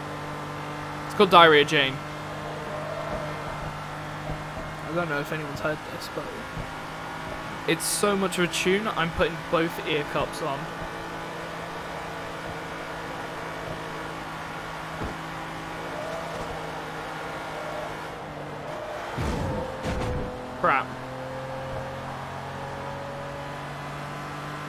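A car engine hums steadily at high speed.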